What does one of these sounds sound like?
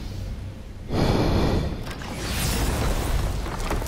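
A magical shimmering whoosh rises and swells.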